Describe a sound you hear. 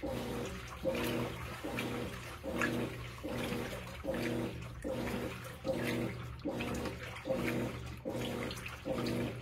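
A washing machine motor hums and whirs in a rhythmic back-and-forth cycle.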